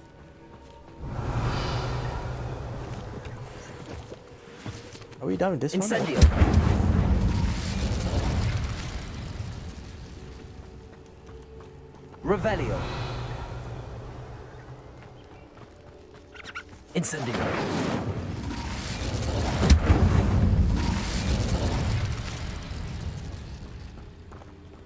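Magic spells whoosh and crackle loudly.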